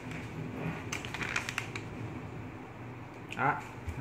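Paper rustles and crinkles in someone's hands.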